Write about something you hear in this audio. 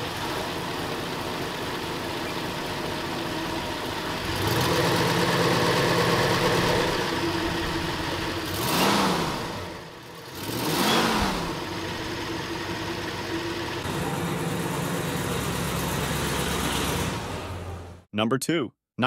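A large engine idles with a steady, heavy rumble.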